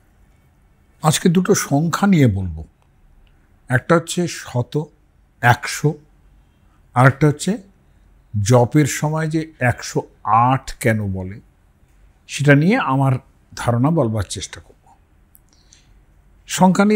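An elderly man speaks calmly and thoughtfully into a clip-on microphone, close by.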